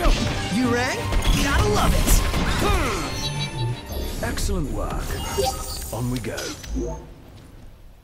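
Weapons clash loudly in a fight.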